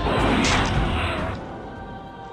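A magic blast bursts loudly and rumbles.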